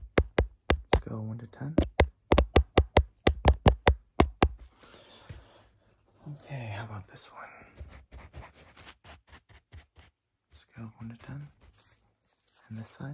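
A young man speaks softly and close to the microphone.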